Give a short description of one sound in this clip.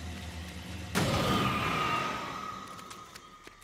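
A loud energy blast bursts with a crackling whoosh that slowly fades.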